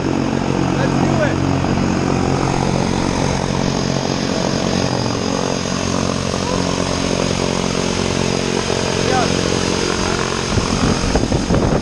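An aircraft engine hums steadily nearby.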